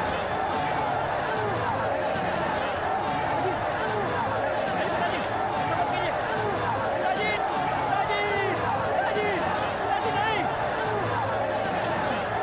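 A large crowd shouts and cheers.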